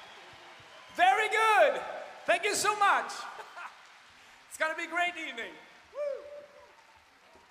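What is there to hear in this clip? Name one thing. A man sings short, loud phrases through a microphone.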